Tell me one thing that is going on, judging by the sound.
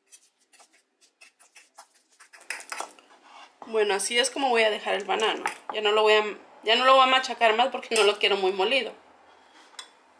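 A fork squishes and scrapes against a plate while mashing soft banana.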